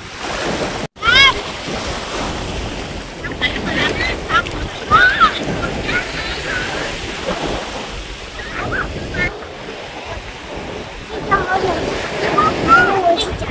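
A young child talks and babbles nearby.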